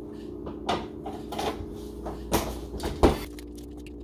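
A cabinet door bangs shut.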